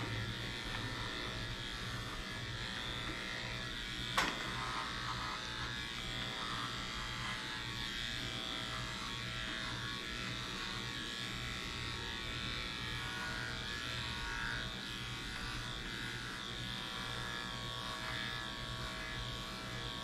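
Electric clippers buzz steadily close by.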